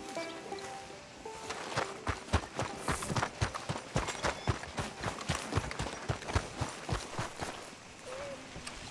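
Footsteps thud quickly on a dirt road.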